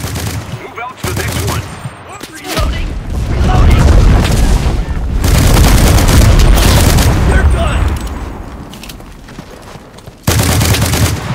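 Rifle shots crack loudly and boom away.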